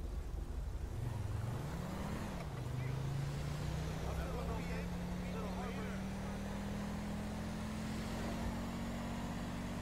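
A car engine revs up and hums steadily as the car drives along.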